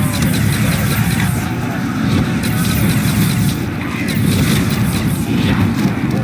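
A gun fires rapid, crackling energy shots.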